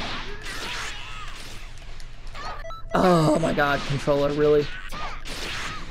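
Energy blasts whoosh and crackle in quick bursts.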